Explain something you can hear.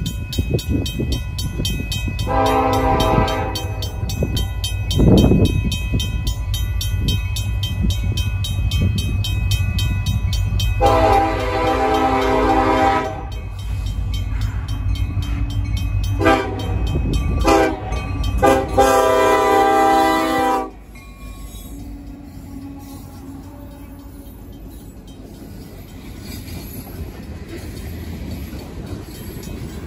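A freight train rumbles past with wheels clattering on the rails.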